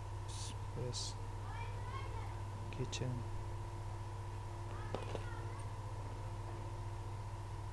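A small metal keyring clicks and clinks.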